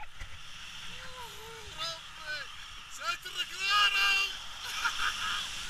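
A young man shouts and whoops excitedly, close by.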